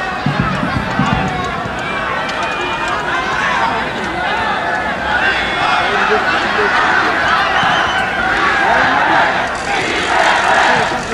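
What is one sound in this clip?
A large crowd of spectators cheers and shouts outdoors, growing louder.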